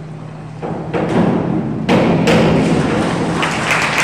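A diver splashes into the water in a large echoing hall.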